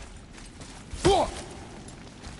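A heavy body lands with a thud.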